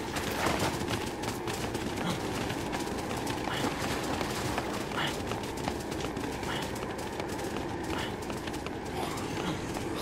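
Footsteps run along a gravel path.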